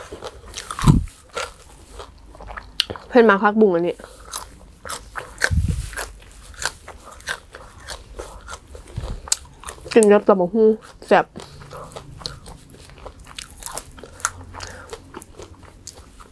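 Fresh greens snap and rustle in a young woman's hands.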